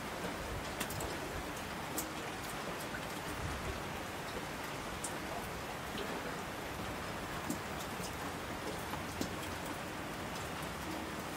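Water rushes and roars down a mountain stream.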